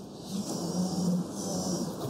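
A jetpack hisses in a short burst.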